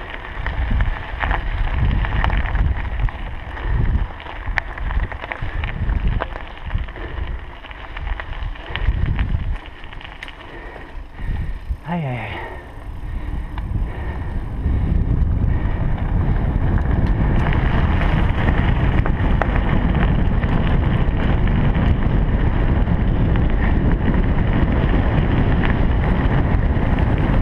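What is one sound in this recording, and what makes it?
Wind buffets the microphone in gusts, then roars steadily.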